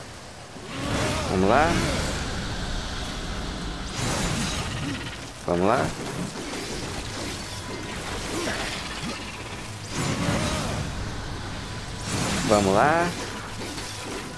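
A large creature roars and growls loudly.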